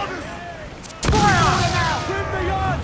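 An explosion bursts on a ship.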